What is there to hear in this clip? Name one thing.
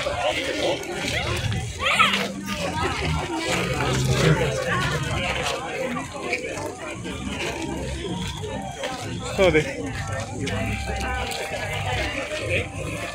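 Footsteps shuffle on a walkway.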